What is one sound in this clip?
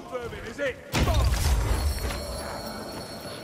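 A deep magical rumble swells when a power is picked up.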